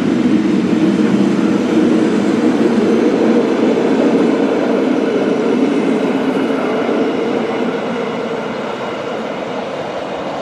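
A train rumbles past on the rails, slowly fading as it moves away.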